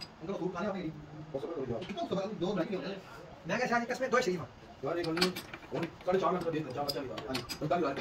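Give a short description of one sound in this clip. A chuck key clicks and grinds as the jaws of a lathe's four-jaw chuck are tightened.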